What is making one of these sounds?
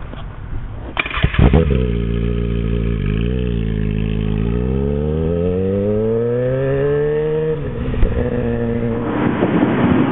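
A motorcycle engine revs hard and roars as it accelerates away.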